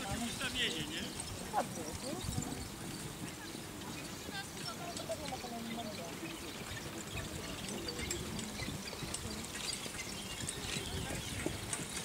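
Carriage wheels roll and rattle over grass.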